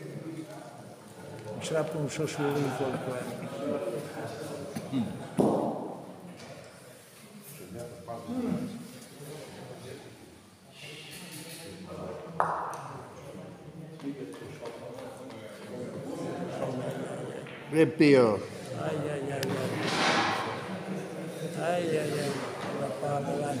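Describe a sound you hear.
Elderly men talk casually nearby in an echoing hall.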